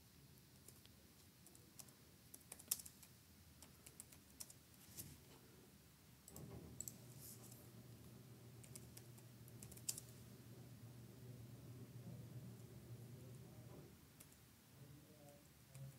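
Keys on a computer keyboard click in short bursts.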